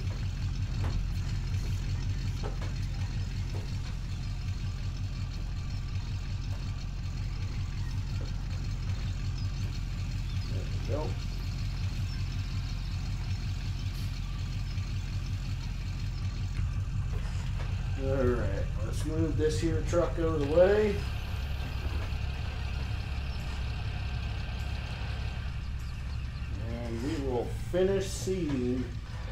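A tractor engine drones steadily at low pitch.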